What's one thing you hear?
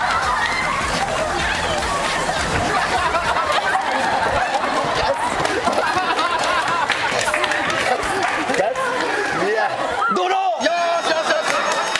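A crowd of young women cheers and laughs.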